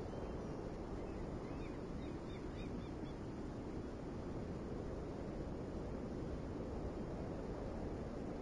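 Sea water rushes along a ship's hull.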